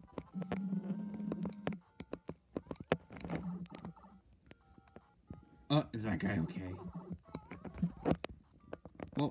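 Electronic game music plays with short chiming beeps and blips.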